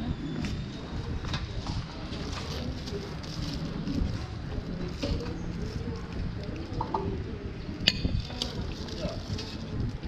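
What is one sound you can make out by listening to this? Thick porridge slops softly into a bowl.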